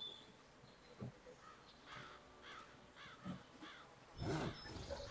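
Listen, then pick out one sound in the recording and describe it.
A hand saw cuts through wood with steady strokes.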